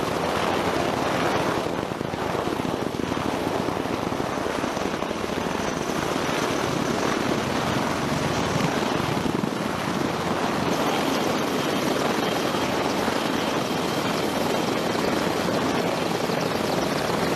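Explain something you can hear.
Aircraft engines roar and whine overhead.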